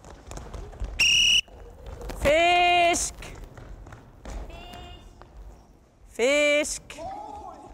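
A referee's whistle blows several sharp blasts in an echoing hall.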